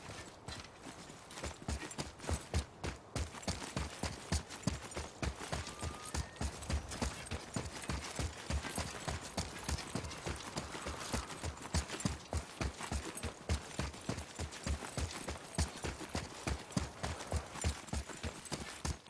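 Heavy footsteps thud quickly on a hard floor.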